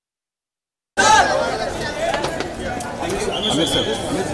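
A noisy crowd jostles and chatters close by.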